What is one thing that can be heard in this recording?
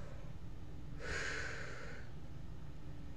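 A man blows out a long breath close by.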